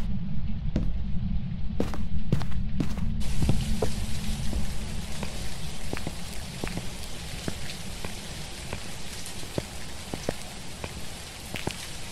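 Footsteps thud slowly and steadily on a wooden floor.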